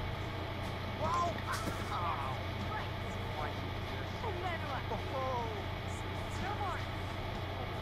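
A young woman talks playfully, close by.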